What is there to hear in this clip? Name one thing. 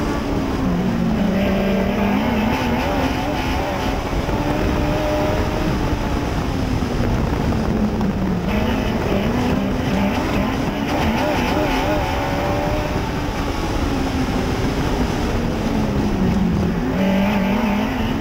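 A modified dirt track race car's engine roars from inside the cockpit, rising and falling through the turns.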